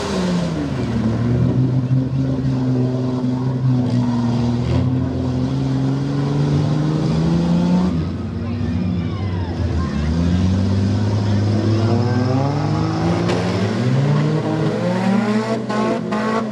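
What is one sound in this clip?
A truck engine roars and revs hard.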